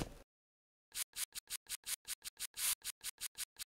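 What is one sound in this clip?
A trigger spray bottle squirts in quick puffs.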